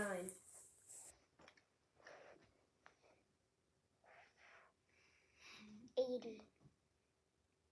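A young girl speaks nearby in a small voice.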